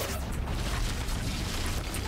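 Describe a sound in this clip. A heavy impact bursts and rumbles.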